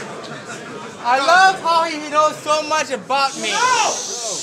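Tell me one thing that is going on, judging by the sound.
A young man raps forcefully into a microphone through loudspeakers.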